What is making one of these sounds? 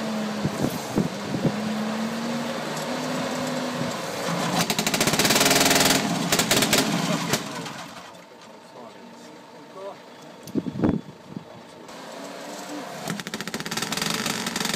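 A motorcycle engine runs and revs up and down loudly.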